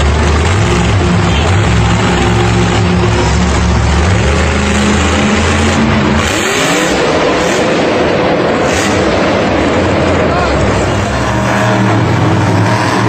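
A monster truck engine roars loudly.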